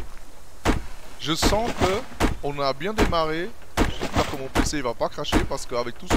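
An axe chops into a tree trunk with sharp thuds.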